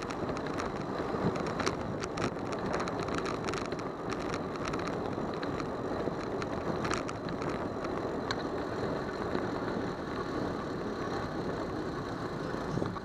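Wind rushes steadily past a moving bicycle.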